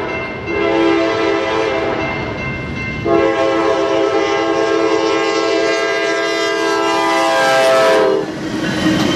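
A train horn blasts loudly in long, steady blasts.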